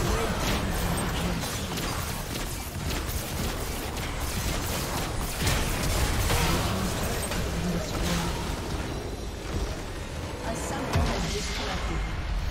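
Spell effects crackle and burst in a fast game fight.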